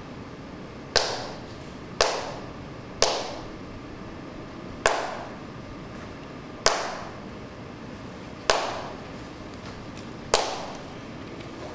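Sharp hand claps ring out one at a time in a reverberant room, spaced about a second or two apart.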